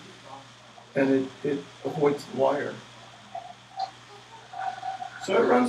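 An older man speaks with animation.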